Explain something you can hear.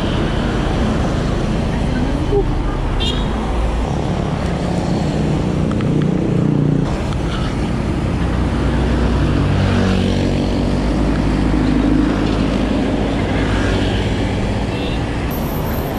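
Traffic engines drone on the road nearby.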